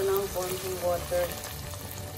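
Water pours into a sizzling pan.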